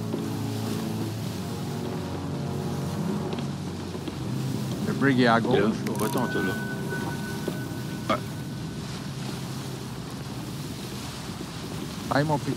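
Waves wash and roll on the open sea.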